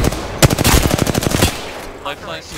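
A rapid-fire gun shoots a quick burst of loud shots.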